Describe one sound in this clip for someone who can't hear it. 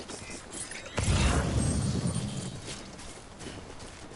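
A low whoosh bursts out and fades.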